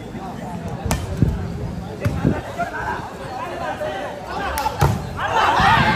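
A ball is struck hard by hand.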